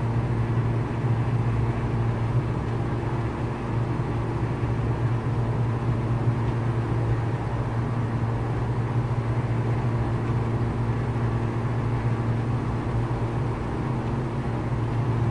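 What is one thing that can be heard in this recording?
A small propeller plane's engine drones steadily from inside the cabin.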